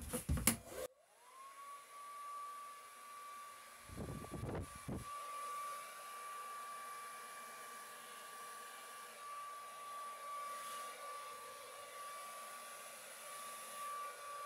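A hair dryer blows with a steady whirring hum.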